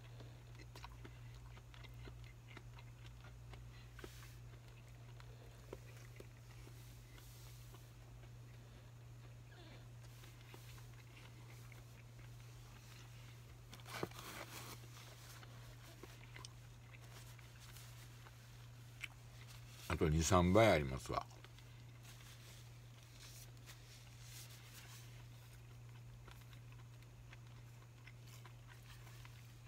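Chopsticks stir soup and clink softly against a bowl.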